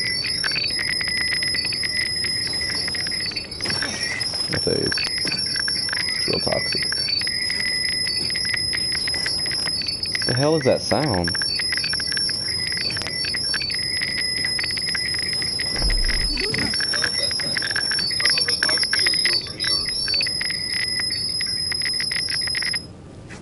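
Electric sparks crackle and fizz.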